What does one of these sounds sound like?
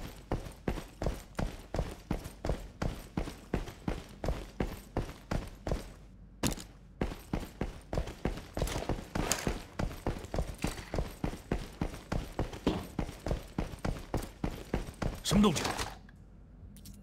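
Footsteps run quickly and steadily on a hard floor.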